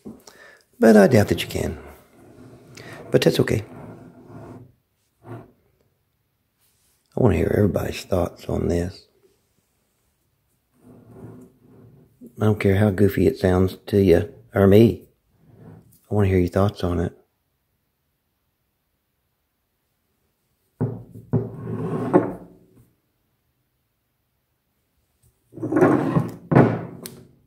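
A heavy rock shifts and scrapes on a wooden table.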